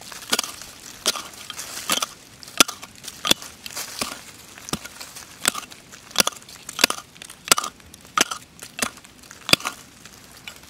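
A small pick strikes dry earth in quick, sharp blows.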